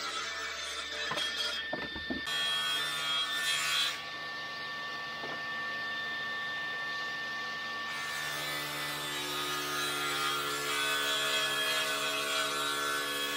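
A table saw whirs steadily.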